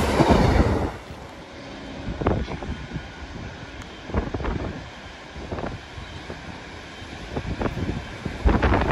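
A train approaches in the distance.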